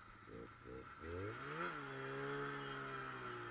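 A snowmobile engine starts up and idles with a steady rumble.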